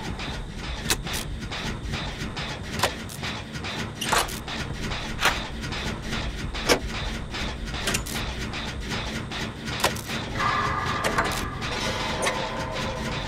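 Metal parts clank and click as an engine is worked on by hand.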